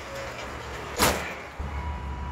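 A fist punches a padded bag with a loud thump.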